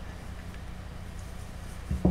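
A rolling pin rolls over soft clay.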